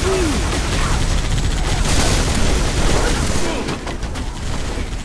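Plasma weapons fire and whine in bursts.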